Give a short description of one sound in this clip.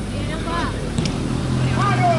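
A football is kicked with a thump.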